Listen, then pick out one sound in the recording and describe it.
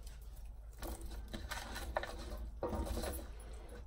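Hands rub and squish raw chicken in a metal bowl.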